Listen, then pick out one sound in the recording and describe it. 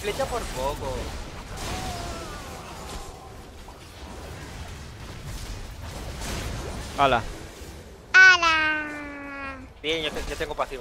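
Fantasy battle effects whoosh and clash.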